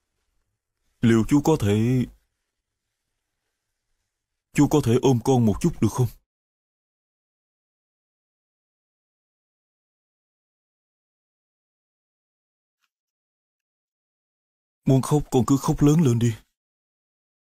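A man speaks in a low, gentle voice.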